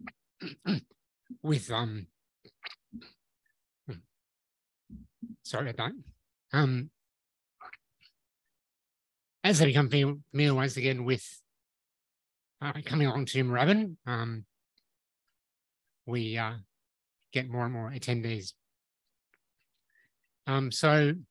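A man speaks calmly through a microphone in a large room, pausing often.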